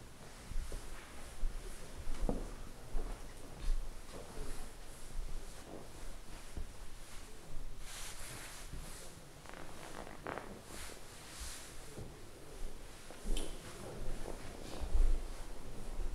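An elderly man speaks calmly and slowly nearby.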